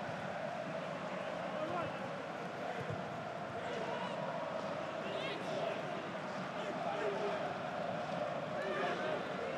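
Players shout and call out to each other across an open, echoing stadium.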